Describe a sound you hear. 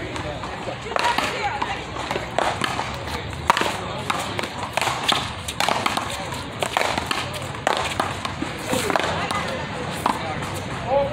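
A handball smacks hard against a wall with sharp echoing cracks.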